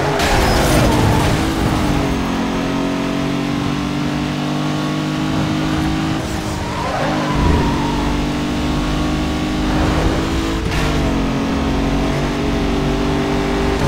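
A racing car engine roars steadily at high revs, its pitch shifting with gear changes.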